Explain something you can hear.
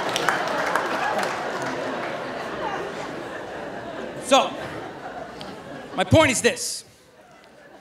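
An audience claps and laughs, fading away.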